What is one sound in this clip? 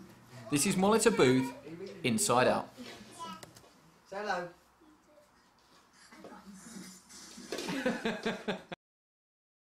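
A toddler laughs and babbles close by.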